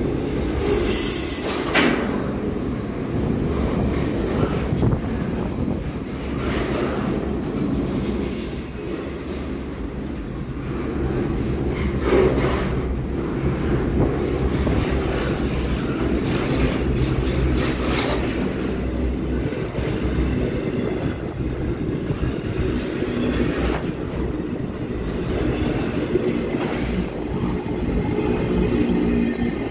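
A long freight train rumbles past close by, with steady low roaring.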